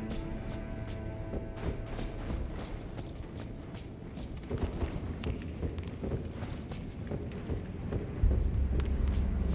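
Armored footsteps clank and thud on a stone floor.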